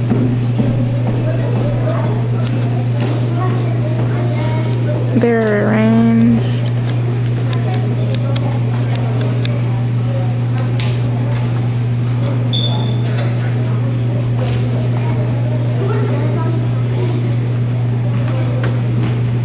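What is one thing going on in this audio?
Children chatter and murmur in a large room.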